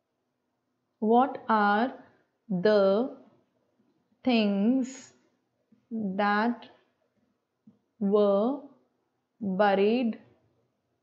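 A young woman speaks slowly and clearly into a close microphone, reading out in short phrases.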